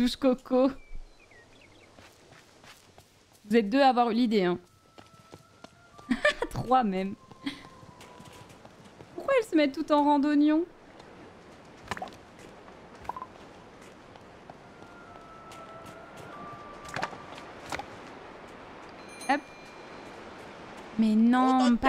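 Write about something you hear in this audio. A young woman talks with animation close to a microphone, in short bursts.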